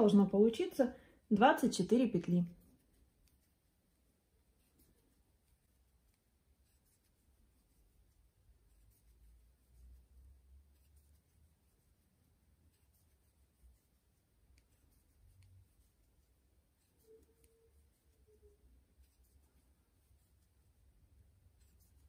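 A crochet hook softly pulls through yarn.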